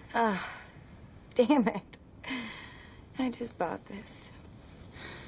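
A young woman laughs lightly.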